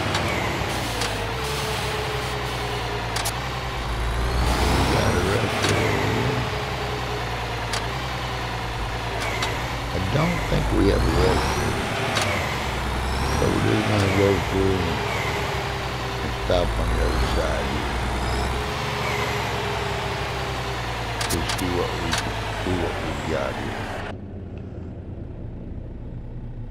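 A truck engine rumbles low and steady as the truck drives slowly.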